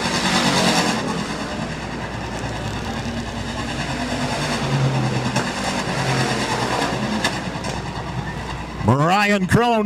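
Race car engines roar as cars speed around a dirt track.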